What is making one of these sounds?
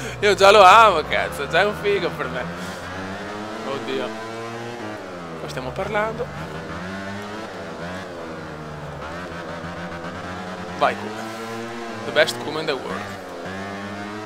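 A motorcycle engine roars loudly, revving up and down as it shifts gears.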